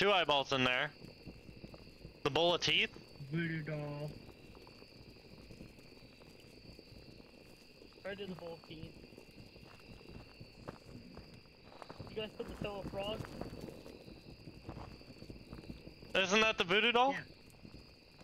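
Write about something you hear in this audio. A young man speaks into a headset microphone with animation, close by.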